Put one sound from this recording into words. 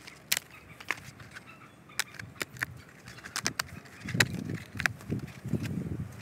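Dry bark cracks and snaps as it is peeled from a dead log.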